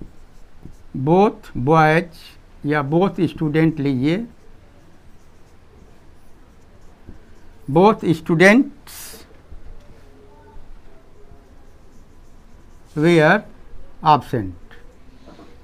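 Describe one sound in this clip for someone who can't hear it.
An elderly man speaks calmly and clearly in short phrases, close by.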